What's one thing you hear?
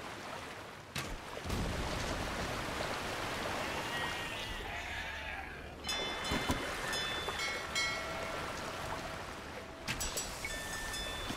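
Cannons fire in a sea battle.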